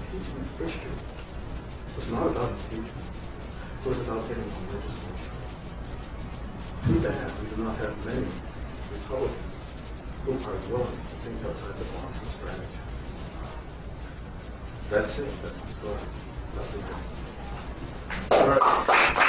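A man speaks calmly, a short way off in a room with a slight echo.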